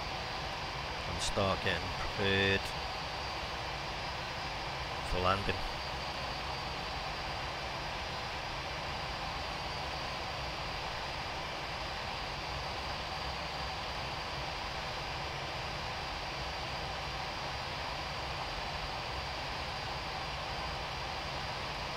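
A jet engine hums steadily in the cabin.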